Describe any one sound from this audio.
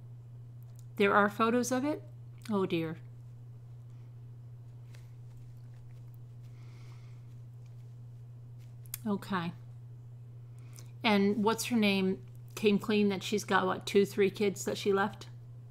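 A middle-aged woman speaks calmly and close to a microphone, in short bursts with pauses.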